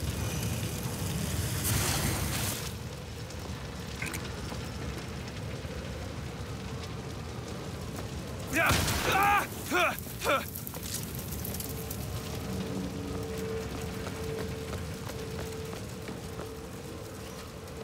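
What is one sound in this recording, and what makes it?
Fire crackles and roars steadily.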